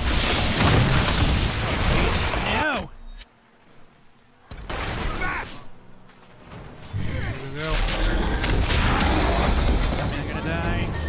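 Fiery magic blasts roar and crackle in a fight.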